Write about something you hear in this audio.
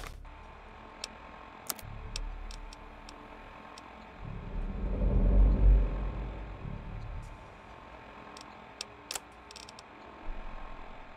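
Short electronic clicks tick as menu items are selected.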